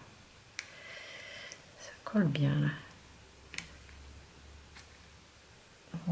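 Paper rustles softly as it is pressed and folded by hand.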